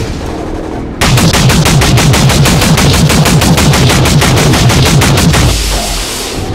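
A heavy gun fires rapidly in a long, loud burst.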